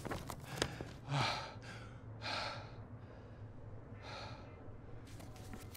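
A sheet of paper rustles as it is unfolded and handled.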